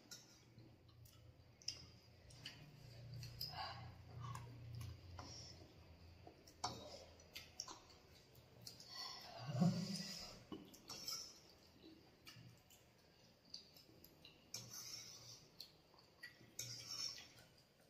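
Metal forks clink against bowls.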